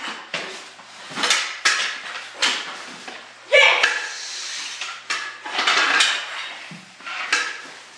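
Hockey sticks knock and scrape on a hard floor.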